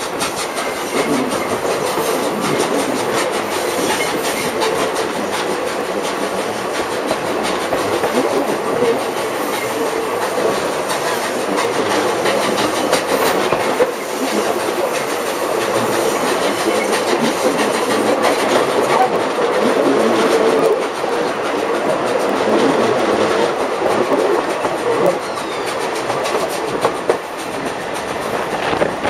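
Train carriages rumble and clatter steadily along the rails close by.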